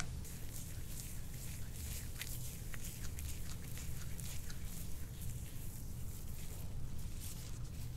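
Gloved hands rub oil over bare skin with soft slippery sounds.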